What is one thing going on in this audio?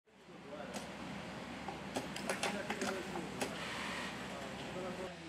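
A sewing machine whirs steadily.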